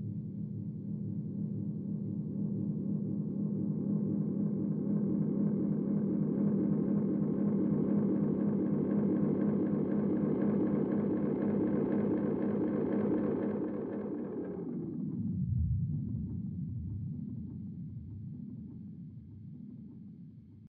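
An electric guitar plays a fast, repeating pattern of notes with echoing delay, then fades.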